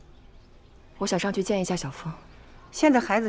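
An older woman speaks anxiously.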